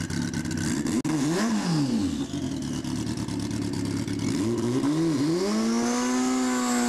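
A motorcycle engine revs up sharply and then drops back, several times.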